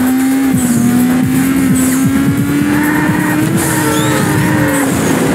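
A race car engine drones at a steady high pitch.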